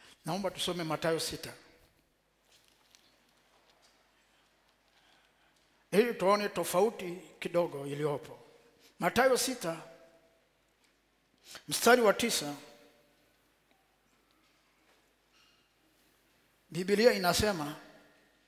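A man preaches through a headset microphone in short, forceful phrases with pauses between them.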